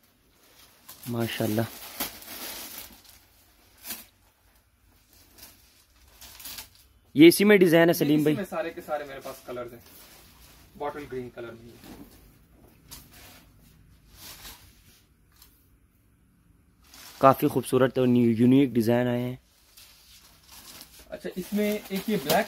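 Fabric rustles as it is unfolded and shaken out.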